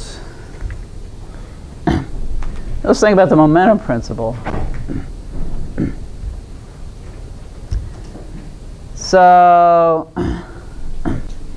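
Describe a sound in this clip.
An older woman speaks calmly.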